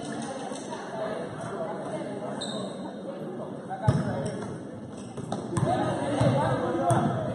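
Spectators chatter in a large echoing gym.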